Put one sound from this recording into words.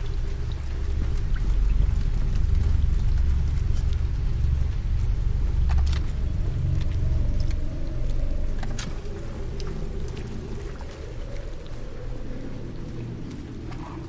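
Heavy rain pours down outdoors.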